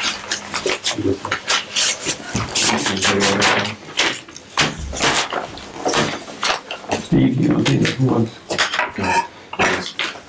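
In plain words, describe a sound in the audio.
Paper folders rustle and flap.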